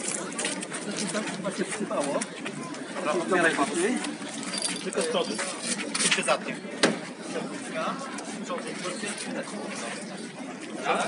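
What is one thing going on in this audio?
Several men shout and argue excitedly close by.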